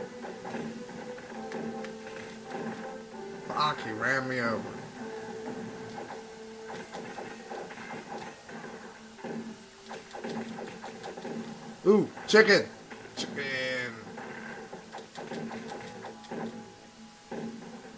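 Video game music plays steadily through a television speaker.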